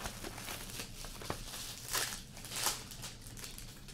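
Plastic wrap crinkles as it is torn off a box.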